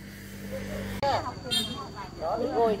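A puppy whimpers and yelps close by.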